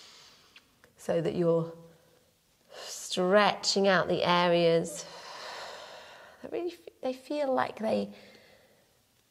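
A woman speaks calmly and clearly into a close microphone, guiding slowly.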